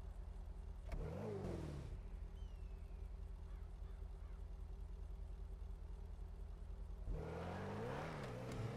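A car engine revs up and down sharply.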